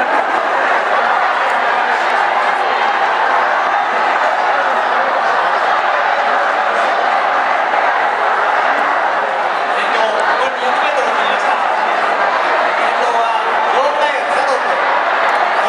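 A large crowd murmurs and chatters in the distance.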